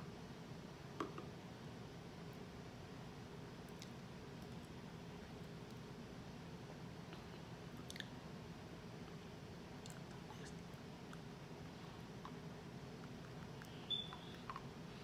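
A spoon and a plastic bottle tap and click lightly.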